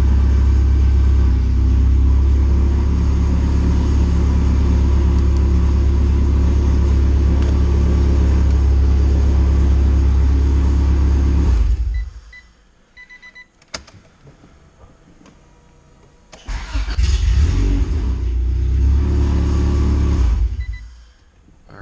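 A car engine idles close by with a deep, steady rumble, cuts out, then starts again.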